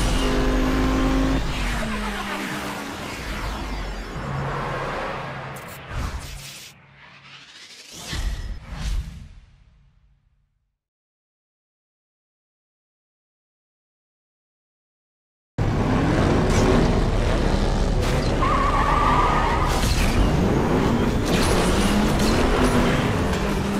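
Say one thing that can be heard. Tyres screech as a motorcycle drifts.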